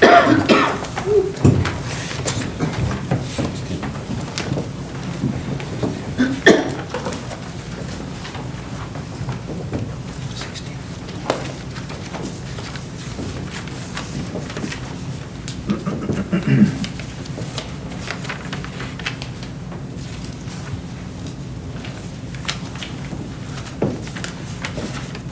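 A mixed choir sings together in a large echoing room.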